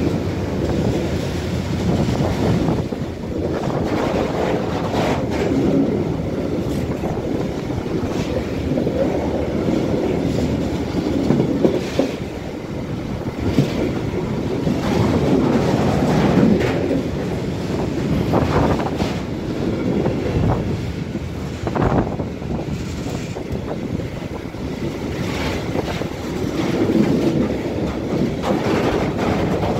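A long freight train of loaded coal hopper wagons rumbles past close by.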